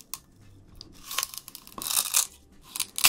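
A young man crunches and bites into a stick of sugarcane close to a microphone.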